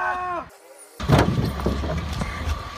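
A body thumps against a car bonnet.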